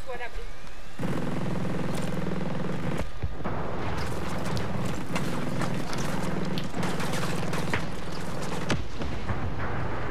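Rifle fire cracks in a video game.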